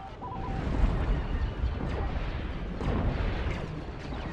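Explosions boom in bursts.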